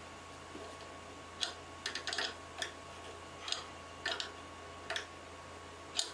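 A pencil scratches briefly across wood.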